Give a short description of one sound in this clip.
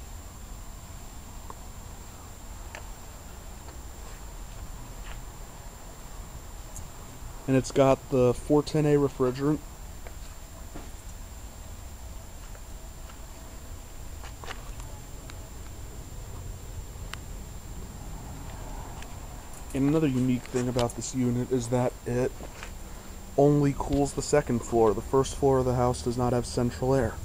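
An air conditioner fan whirs with a steady low hum.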